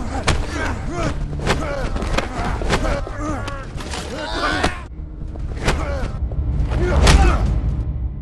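Blows land with sharp, heavy thuds.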